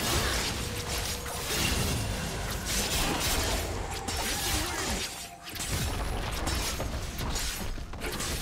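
Game combat effects crackle, clash and whoosh in quick bursts.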